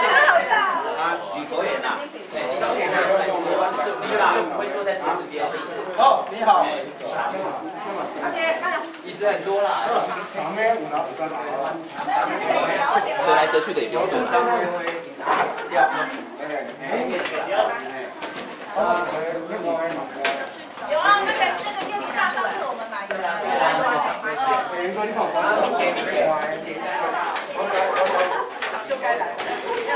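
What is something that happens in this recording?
Several adults chat nearby.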